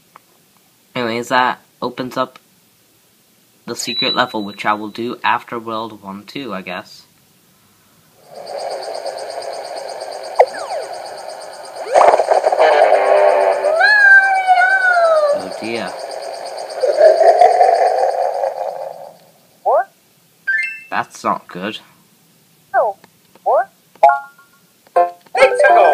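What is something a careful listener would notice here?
Bright cartoonish game sound effects chime and chirp in short bursts.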